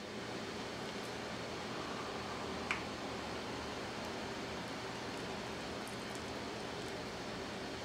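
A ladle scoops soup and clinks against a bowl.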